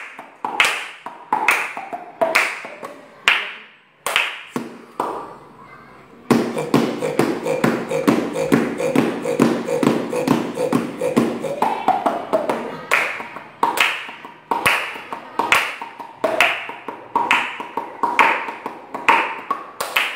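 Two young boys clap their hands in a quick rhythm.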